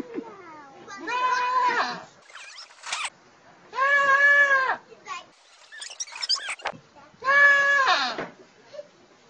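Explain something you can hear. A goat bleats loudly in long, wavering cries.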